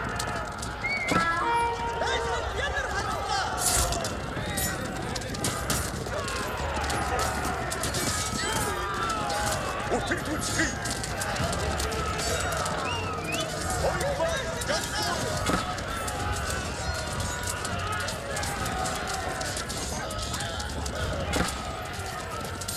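Swords and shields clash in a noisy battle.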